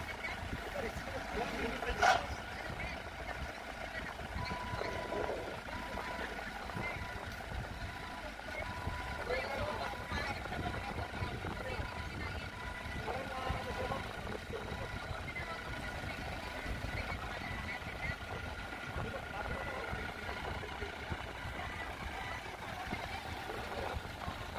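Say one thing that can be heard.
A forklift engine hums and rumbles steadily nearby outdoors.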